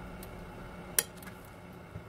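A rice paper sheet clicks against a stack of plates.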